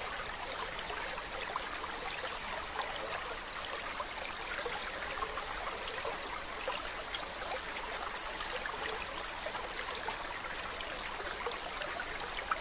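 Shallow water splashes and gurgles steadily over stones.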